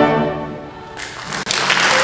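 An orchestra plays a sustained final chord.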